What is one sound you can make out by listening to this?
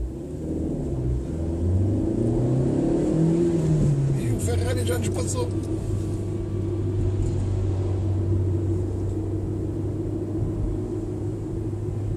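A car engine hums steadily, revving up through the gears and then settling.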